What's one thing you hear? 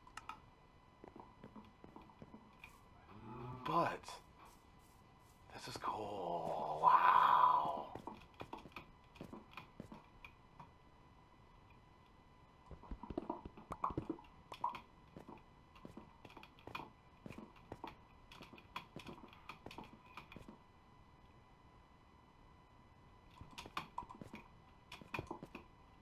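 Game blocks crack and break with quick repeated taps.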